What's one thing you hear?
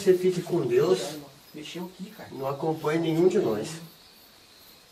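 A man speaks nearby with animation.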